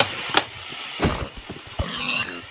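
A blow thuds against a pig.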